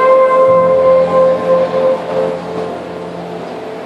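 A saxophone plays a sustained melody in an echoing hall.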